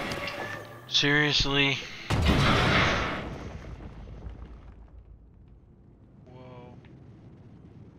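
A young man speaks into a headset microphone.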